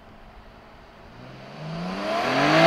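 Tyres hiss on the road as a car nears.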